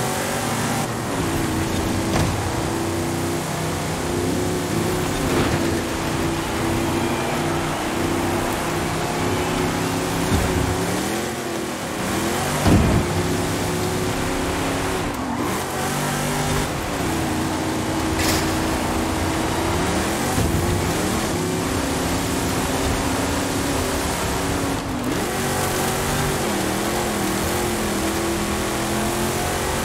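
A truck engine roars steadily, rising and dropping in pitch as it shifts gears.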